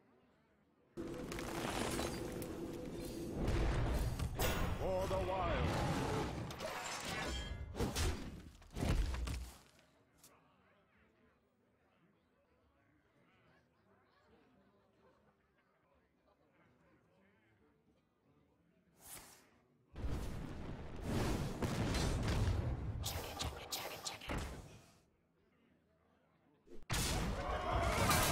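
Game sound effects clash and chime.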